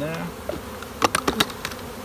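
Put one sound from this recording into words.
A plastic lid clicks and rattles.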